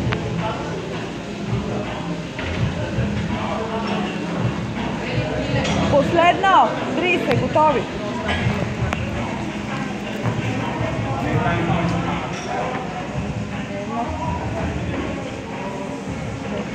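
A crowd of people chatters and shouts in a large echoing hall.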